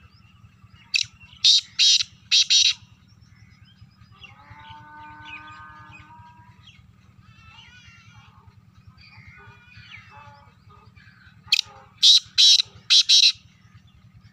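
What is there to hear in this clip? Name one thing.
A caged partridge calls in loud, harsh bursts close by.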